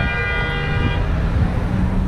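A car horn honks loudly.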